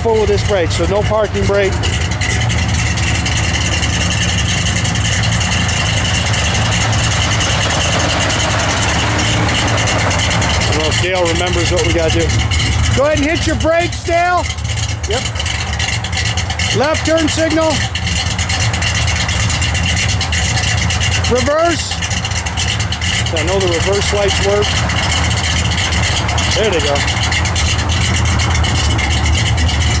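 A car engine idles with a deep, steady exhaust rumble close by.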